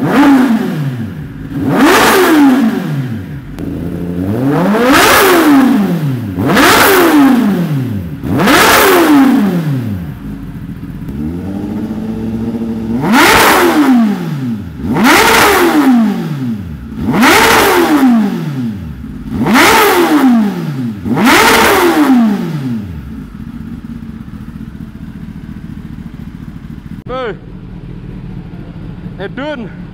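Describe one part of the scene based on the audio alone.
An inline-four sport bike idles.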